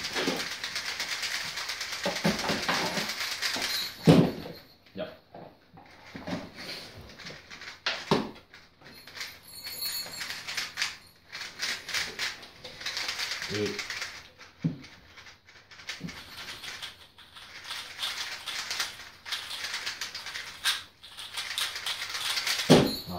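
Puzzle cubes click and rattle as they are turned quickly.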